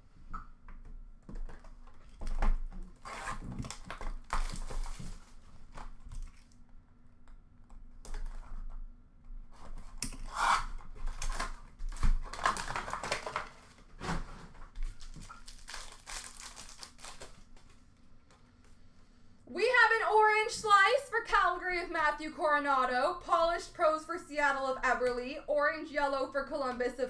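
Playing cards and card packs rustle and tap as hands handle them up close.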